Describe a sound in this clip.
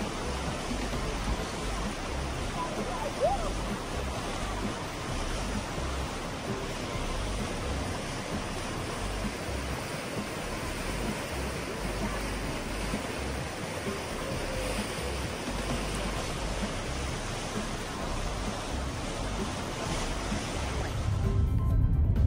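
A swollen river rushes and roars nearby.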